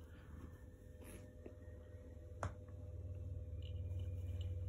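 A cat meows softly close by.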